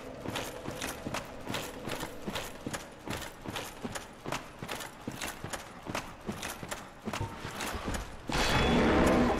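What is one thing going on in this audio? Armoured footsteps run over a rocky floor.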